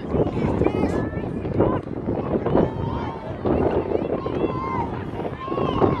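A crowd of adults and children shout and call out across an open field.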